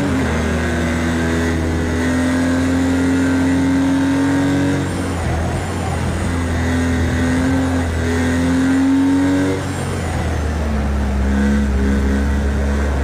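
A racing car engine roars, rising in pitch and dropping sharply at each gear change.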